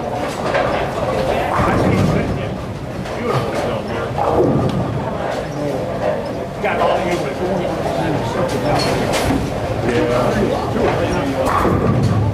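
A noisy crowd chatters in a large echoing hall.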